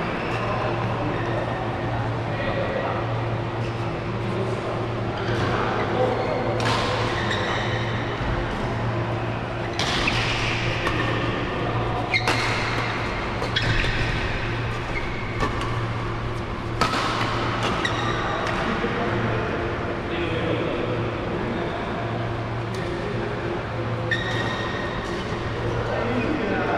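Shoes squeak and scuff on a court floor.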